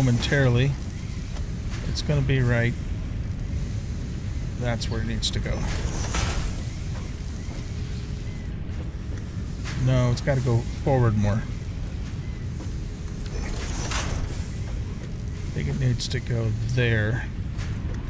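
An older man talks calmly and casually into a close microphone.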